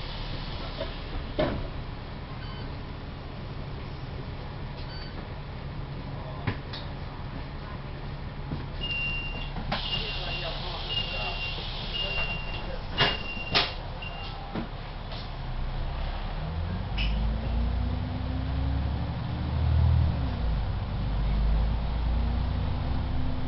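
A bus engine rumbles low and steadily.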